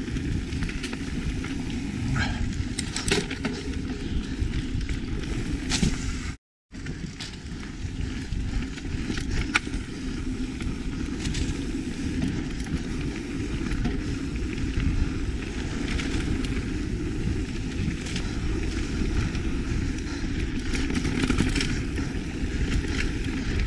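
A mountain bike rattles and clicks over bumps.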